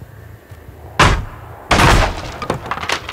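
A blade swings and smashes into wooden boards with a loud crash.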